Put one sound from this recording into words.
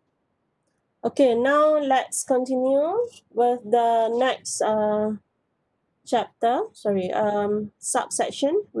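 A woman speaks calmly into a microphone, heard as if over an online call.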